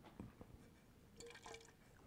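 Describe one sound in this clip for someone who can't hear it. A man sniffs wine from a glass.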